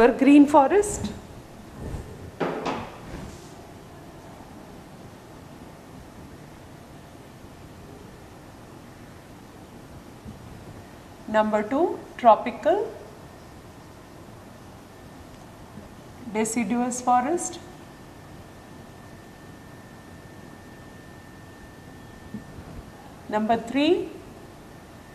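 A woman speaks calmly in short phrases, with pauses between them.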